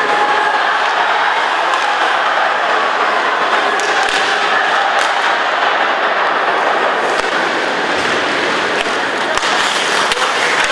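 A large crowd murmurs and cheers steadily in an echoing arena.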